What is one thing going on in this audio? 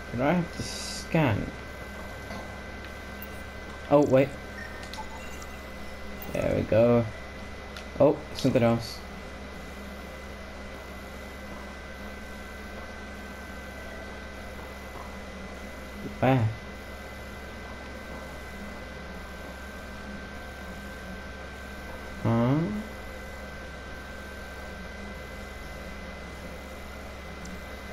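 An electronic scanner hums with a steady high tone.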